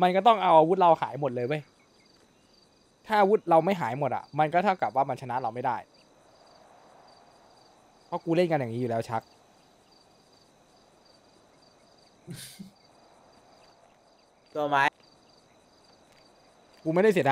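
A man talks calmly over a microphone in bursts.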